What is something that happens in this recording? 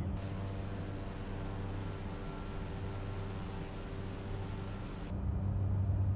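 A propeller plane's engine drones steadily from outside.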